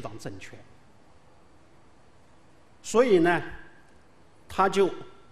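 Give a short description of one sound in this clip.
A middle-aged man speaks calmly into a microphone in short phrases.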